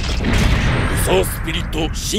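A man speaks forcefully.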